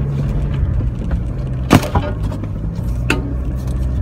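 An engine rumbles and revs nearby.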